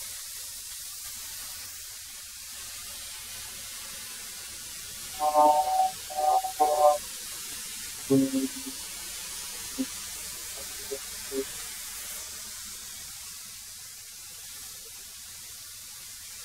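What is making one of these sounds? A wood planer hums steadily.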